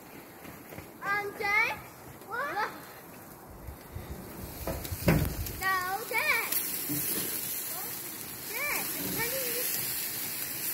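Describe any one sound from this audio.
A young child shouts out excitedly outdoors.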